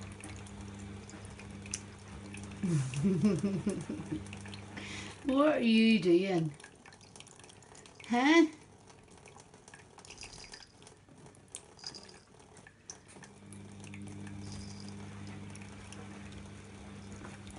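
A cat laps water with quick, soft licks.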